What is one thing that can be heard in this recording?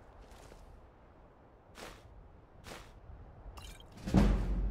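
A soft menu click sounds as items are picked up.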